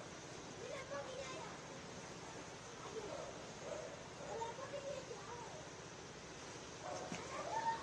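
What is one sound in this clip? Floodwater swishes around men wading through it.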